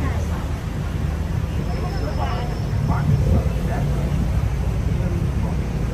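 City traffic hums and rumbles steadily below.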